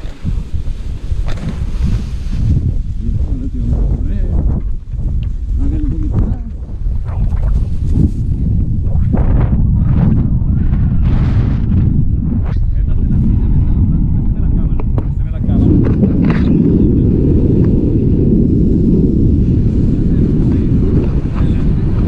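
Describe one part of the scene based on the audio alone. Wind buffets a microphone outdoors, growing stronger as a paraglider takes off.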